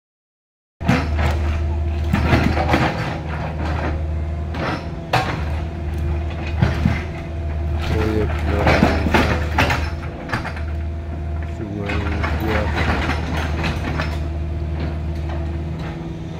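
Rocks clatter and scrape as an excavator bucket digs.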